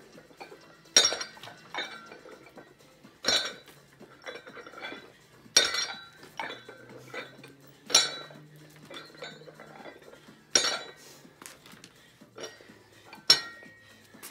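A dumbbell knocks down onto a hard stone floor.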